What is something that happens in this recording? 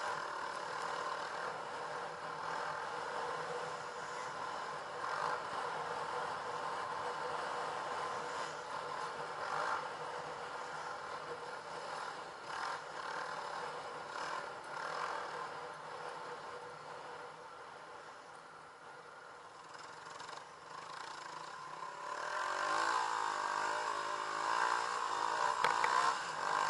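A dirt bike engine hums close by, revving up and down.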